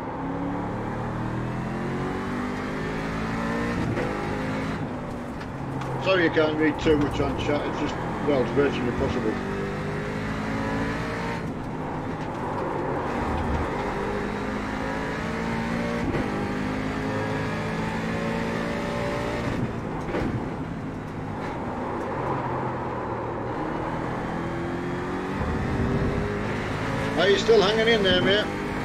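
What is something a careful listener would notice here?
A racing car engine roars and revs up and down through the gears.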